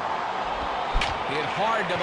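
A wooden bat cracks against a baseball.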